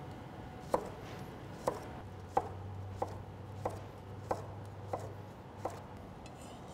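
A knife chops cucumber on a wooden board with quick, sharp taps.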